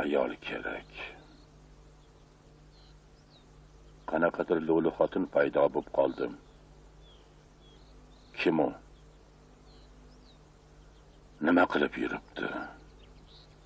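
A middle-aged man speaks tensely, close by, in short bursts.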